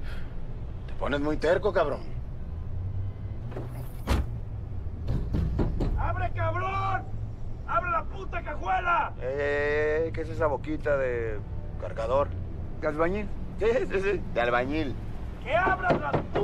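A man speaks in a firm, low voice close by.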